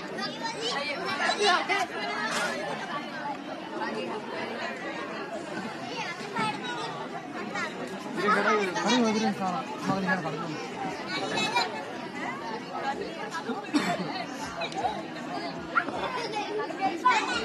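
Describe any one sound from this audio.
Several men and women chatter in the background.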